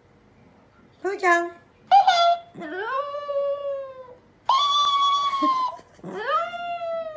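A small dog howls in long, rising and falling cries.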